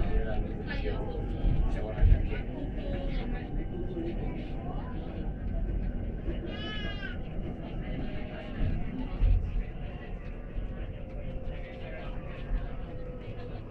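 A bus rumbles along a road, heard from inside.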